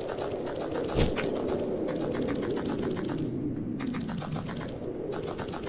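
Quick, light footsteps patter steadily as a small game character runs.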